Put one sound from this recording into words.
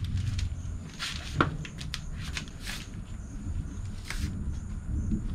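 A man bumps and knocks against a thin metal cabinet.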